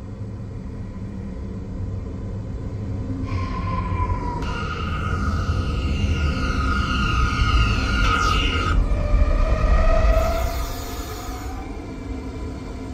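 A subway train rumbles into a station and slows to a stop.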